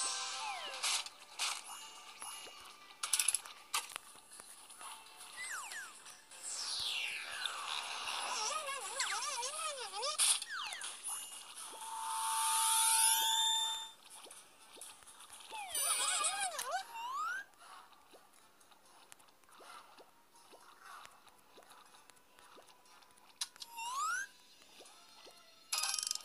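Cheerful game sound effects chime, pop and whoosh.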